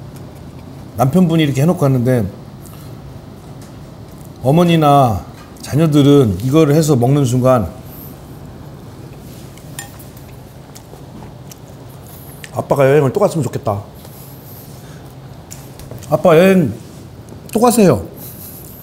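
A middle-aged man talks with animation, close by.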